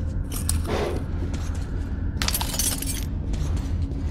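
A metal locker door creaks open.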